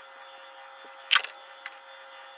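Metal clinks against a lathe chuck.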